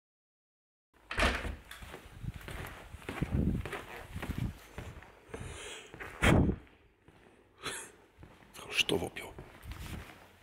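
A phone rustles and bumps as it is handled.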